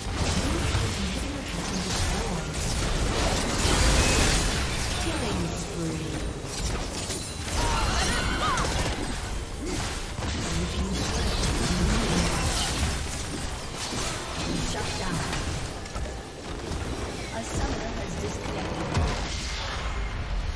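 Spell effects and attacks crackle and blast in a fast battle.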